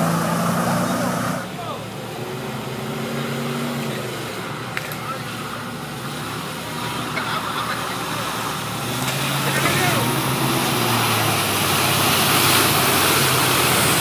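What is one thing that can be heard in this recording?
Water splashes and sprays as a truck ploughs through a shallow river.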